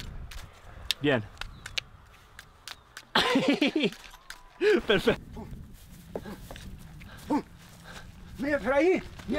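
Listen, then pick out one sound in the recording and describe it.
A man laughs and shouts with animation nearby.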